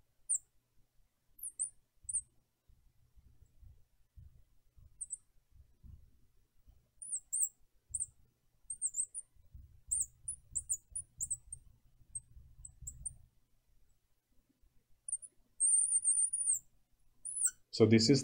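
A marker squeaks faintly as it writes on glass.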